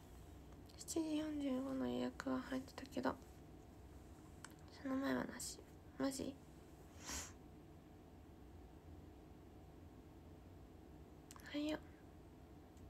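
A young woman speaks softly and briefly, close by.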